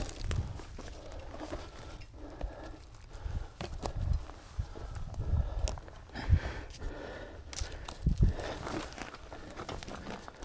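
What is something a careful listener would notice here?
A bicycle rattles and clicks as it is handled.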